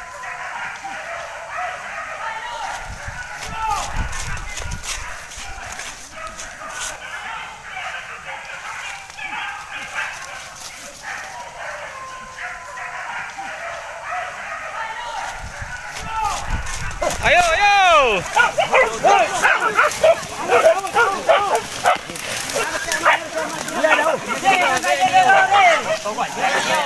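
Leaves and branches rustle as people push through dense brush.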